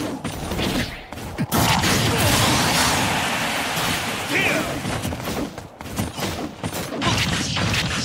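Fighting game effects crash and whoosh in quick bursts.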